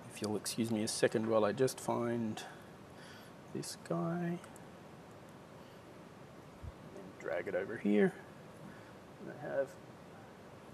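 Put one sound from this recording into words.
A man speaks calmly into a microphone, in short bursts.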